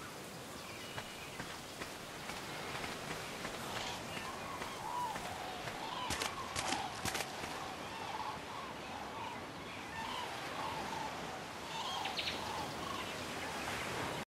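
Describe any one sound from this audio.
Small waves lap gently on a shore.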